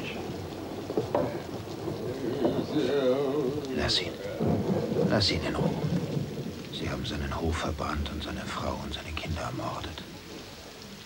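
A younger man talks quietly close by.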